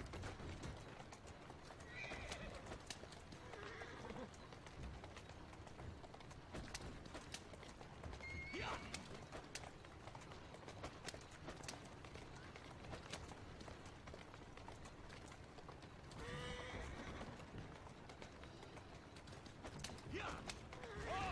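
Carriage wheels rumble over cobbles.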